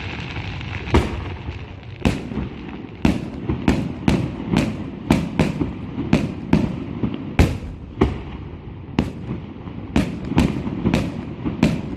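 Fireworks crackle and pop in quick bursts.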